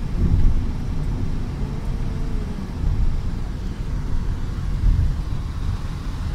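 Wind rumbles loudly against a moving car.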